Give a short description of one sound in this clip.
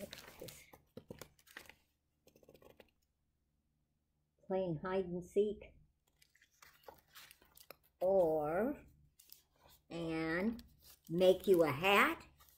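Paper pages rustle as a book is handled.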